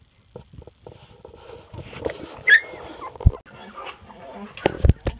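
Puppies whimper and squeak close by.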